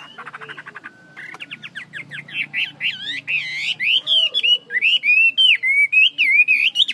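A caged bird sings loud, rapid, rising and falling whistled notes close by.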